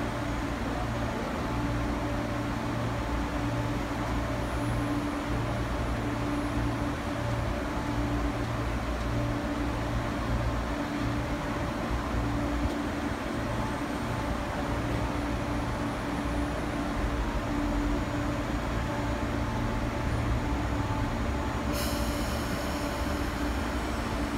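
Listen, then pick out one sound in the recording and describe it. A train hums steadily close by.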